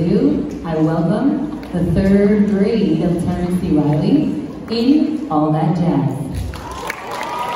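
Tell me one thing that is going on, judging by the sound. A children's choir sings in a large hall.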